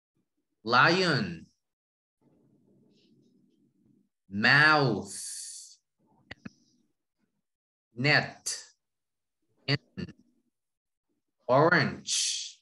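A young man speaks through an online call, saying single words with pauses between them.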